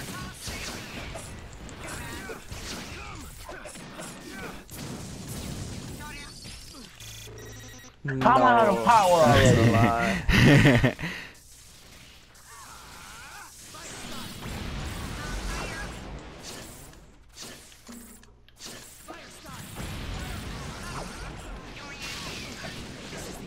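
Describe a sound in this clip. Punches, whooshes and fiery blasts crackle and thud in a fast fight.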